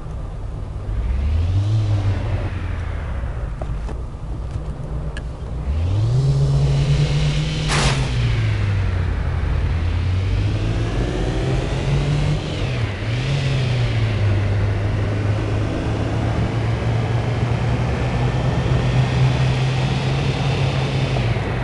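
A car engine revs up and down as it shifts through gears.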